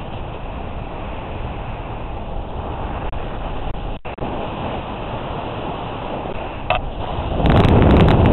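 Wind rushes loudly past, growing stronger at the end.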